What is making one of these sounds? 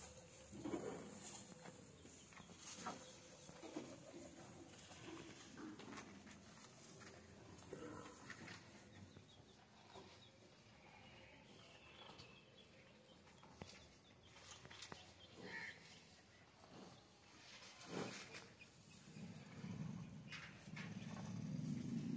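A buffalo chews hay with soft crunching sounds.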